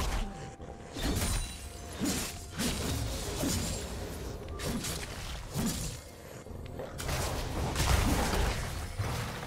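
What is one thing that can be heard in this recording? Magic spells whoosh and crash in a fast video game battle.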